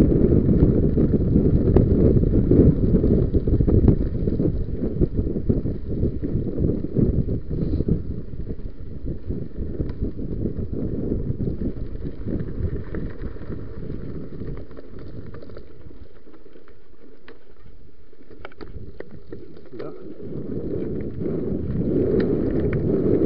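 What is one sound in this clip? Wind rumbles loudly past the bike.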